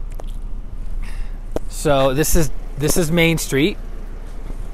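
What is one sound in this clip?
A man talks calmly and close by.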